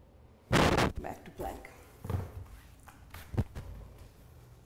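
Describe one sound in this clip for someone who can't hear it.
Bare feet thud and shuffle on a mat.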